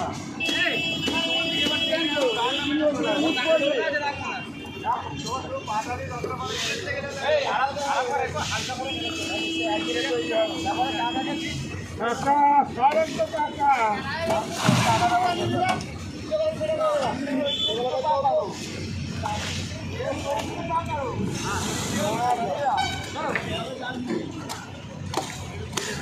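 Several men talk and call out to one another nearby, outdoors.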